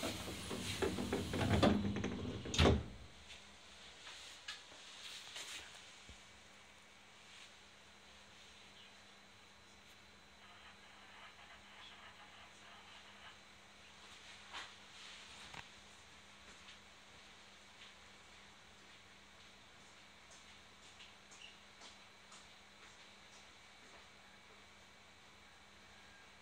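A train hums quietly while standing.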